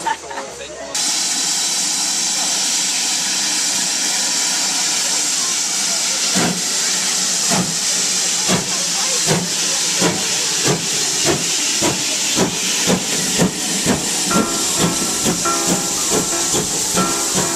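A steam locomotive hisses loudly and steadily.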